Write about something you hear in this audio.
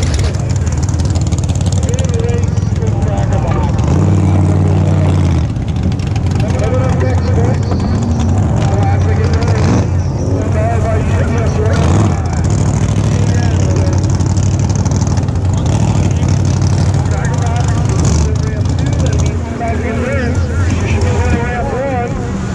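Water splashes and churns against a boat hull.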